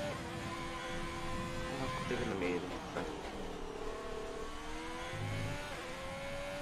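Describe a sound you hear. A racing car engine whines loudly, rising and dropping in pitch as the gears change.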